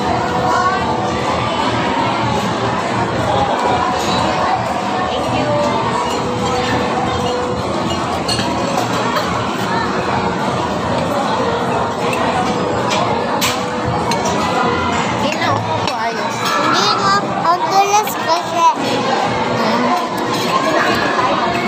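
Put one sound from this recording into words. Many voices chatter throughout a busy, echoing room.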